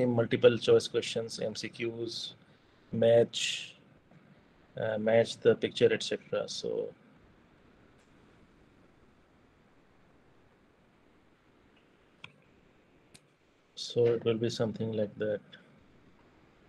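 A young man speaks calmly over an online call, pausing between phrases.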